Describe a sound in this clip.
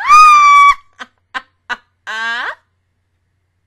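A young woman laughs into a microphone.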